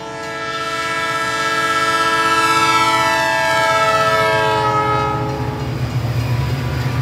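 A train horn blares loudly and fades away.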